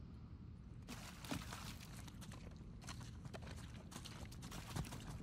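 Footsteps scuff on stone, close by.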